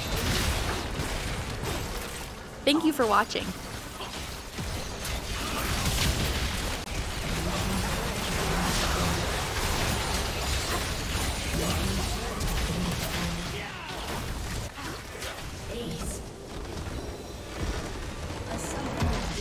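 Spell effects whoosh and clash in a fast fight.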